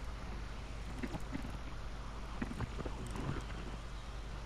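Knobs on a radio click as they are turned.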